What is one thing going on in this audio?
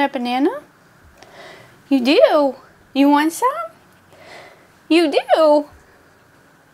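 A young woman talks close by in a high, playful voice.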